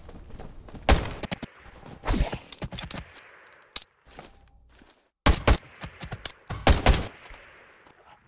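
A rifle fires in loud, sharp bursts.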